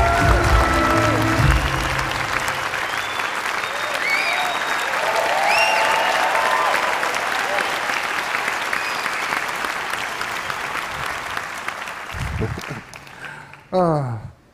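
An audience applauds loudly in a large hall and slowly quiets down.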